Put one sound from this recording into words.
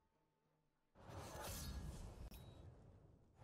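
A fiery burst whooshes loudly.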